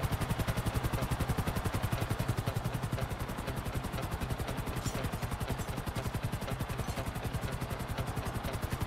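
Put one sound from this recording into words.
A helicopter's rotor thumps rapidly close by.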